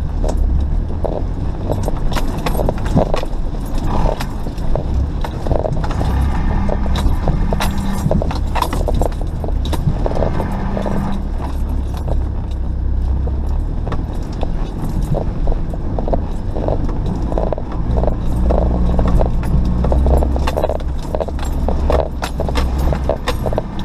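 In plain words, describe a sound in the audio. A vehicle body knocks and rattles over bumps.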